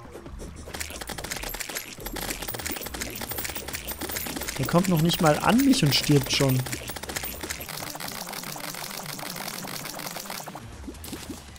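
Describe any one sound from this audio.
Rapid electronic hit sounds clatter in quick succession.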